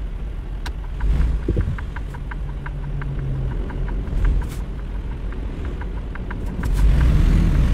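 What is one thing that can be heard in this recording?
A turn signal ticks rapidly.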